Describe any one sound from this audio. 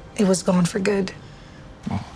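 A woman speaks quietly and earnestly close by.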